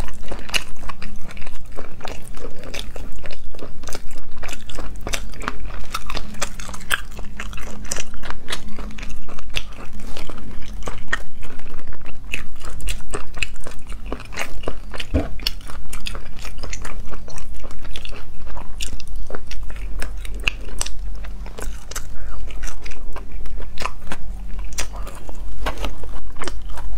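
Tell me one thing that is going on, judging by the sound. A young woman cracks and peels snail shells with her fingers close to a microphone.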